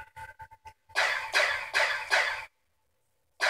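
Pistols fire a quick burst of shots.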